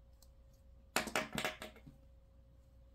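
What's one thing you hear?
A pen is set down onto a table.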